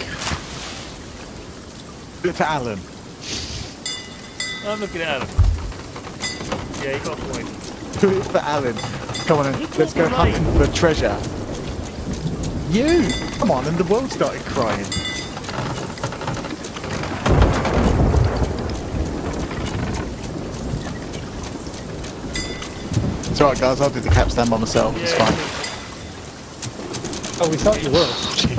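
Heavy rain pours steadily.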